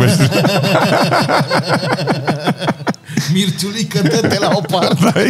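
A young man laughs heartily, close to a microphone.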